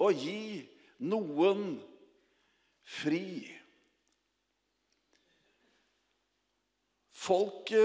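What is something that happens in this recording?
A middle-aged man speaks with animation through a microphone, with pauses.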